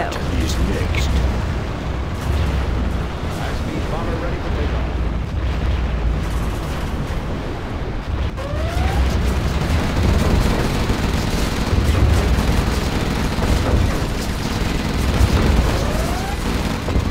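Explosions boom and rumble one after another.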